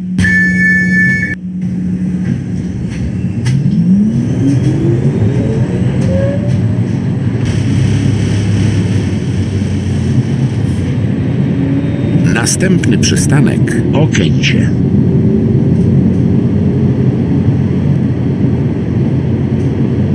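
A tram rumbles along the rails.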